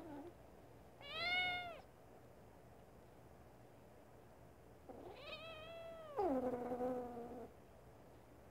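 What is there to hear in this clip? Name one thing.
A kitten meows loudly up close.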